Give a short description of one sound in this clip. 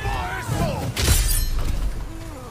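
A sharp blast bursts with crackling sparks.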